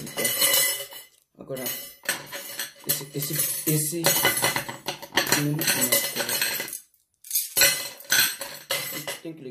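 A knife and fork scrape on a plate.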